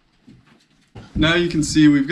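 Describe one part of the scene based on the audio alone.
A young man speaks loudly and animatedly close by.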